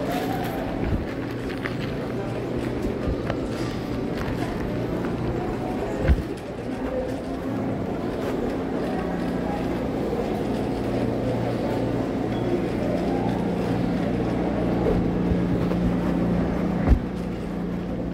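Refrigerated display cases hum steadily.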